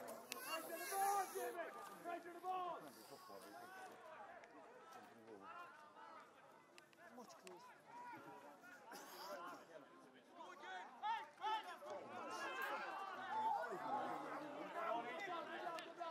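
Men among nearby spectators talk and call out excitedly outdoors.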